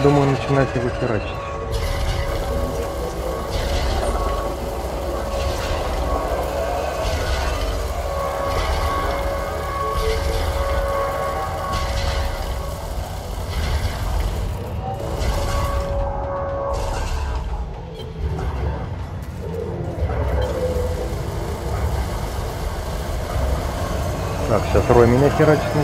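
A spaceship engine hums low and steady.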